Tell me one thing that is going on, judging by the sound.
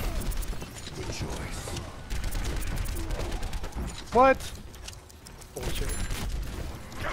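A rapid-fire gun shoots in short bursts.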